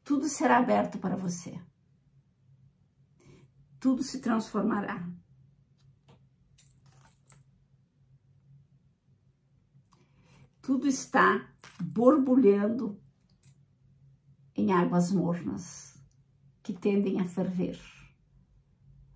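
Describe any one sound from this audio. A woman speaks calmly and close by, in short phrases with pauses.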